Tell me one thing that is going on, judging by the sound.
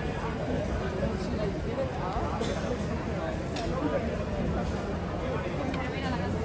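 A crowd of people chatters and murmurs outdoors on a busy street.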